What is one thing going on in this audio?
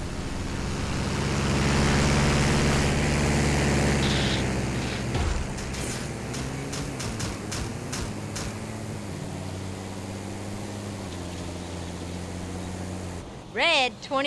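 A heavy engine hums steadily as a truck drives along.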